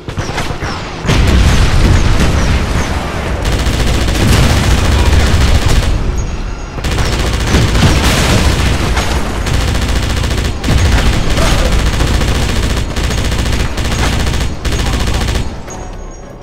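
A heavy machine gun fires in long rapid bursts.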